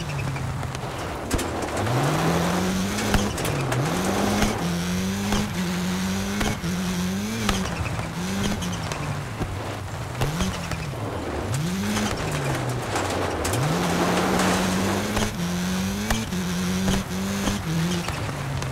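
A rally car engine revs hard, rising and falling with each gear change.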